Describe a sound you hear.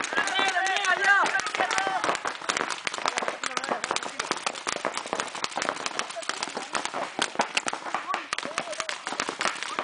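Paintball markers pop rapidly in bursts outdoors.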